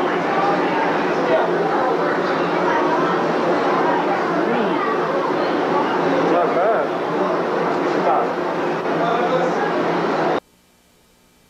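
A crowd of men and women chatters loudly all around.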